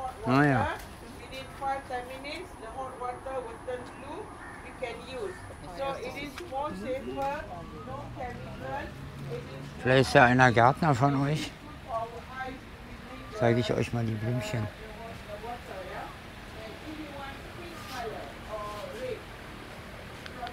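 Several adults chat nearby outdoors.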